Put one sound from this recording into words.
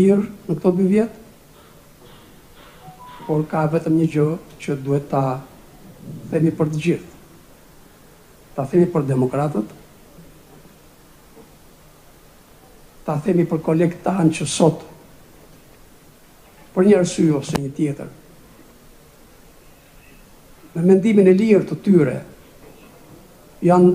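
An elderly man speaks slowly into a microphone, with long pauses, heard through a loudspeaker in a large room.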